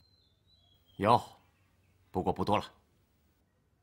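A younger man answers quietly close by.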